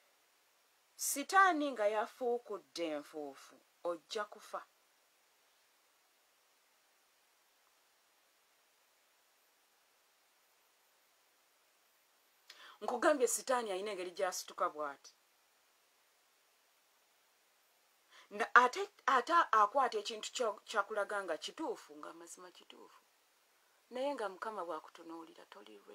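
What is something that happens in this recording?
A woman speaks calmly and close to a microphone, with long pauses.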